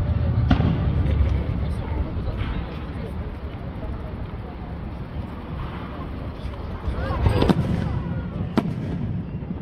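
Fireworks bang loudly in the distance.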